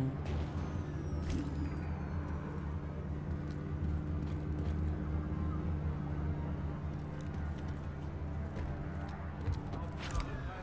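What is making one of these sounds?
Footsteps tread on a hard rooftop.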